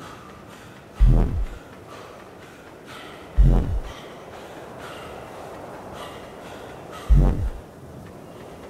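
A fist thuds heavily against stone, again and again.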